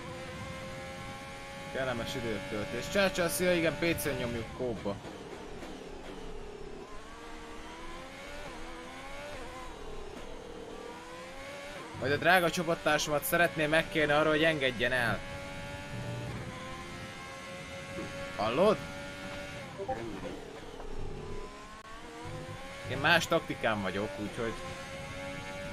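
A racing car engine whines steadily, rising and falling in pitch as it shifts gears.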